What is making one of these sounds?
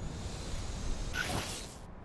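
A small drone buzzes as it hovers.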